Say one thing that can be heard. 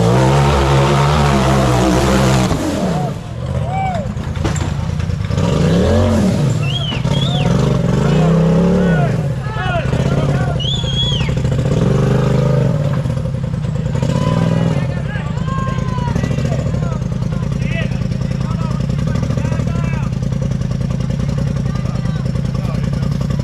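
An off-road buggy engine roars and revs hard, rising and falling in pitch.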